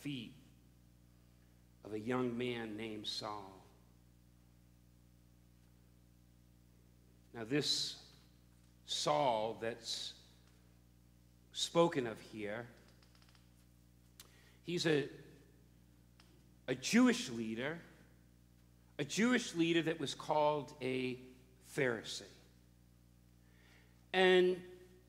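A middle-aged man speaks with animation through a microphone, with long pauses.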